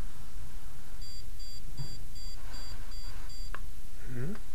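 An electronic device beeps rapidly in short pulses.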